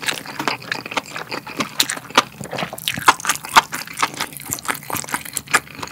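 Gloved hands squish and tear saucy meat close by.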